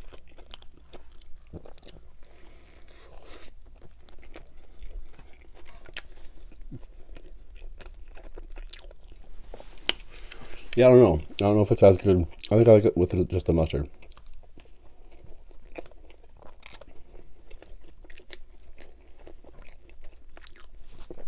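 A man chews food noisily close to a microphone.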